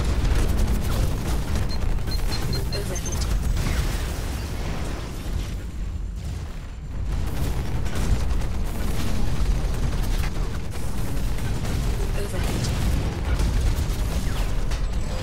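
Heavy gunfire rattles in rapid bursts.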